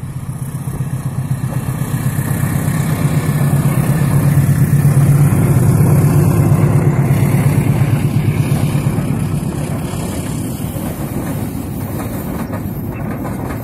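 Train wheels clatter rhythmically over the rails as a long train passes close by.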